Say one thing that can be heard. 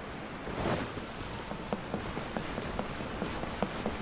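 Footsteps thud on a wooden bridge.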